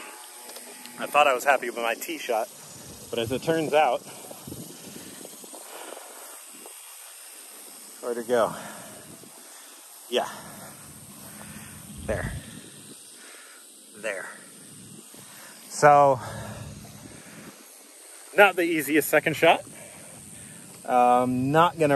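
A man talks casually close to the microphone, outdoors.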